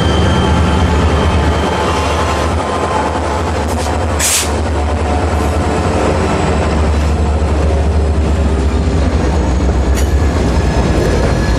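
A diesel locomotive engine rumbles loudly close by as it passes.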